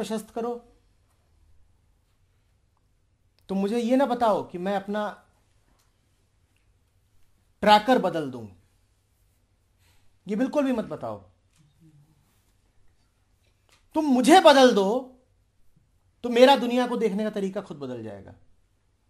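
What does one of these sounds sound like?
A man speaks calmly in short phrases with long pauses, close to a microphone.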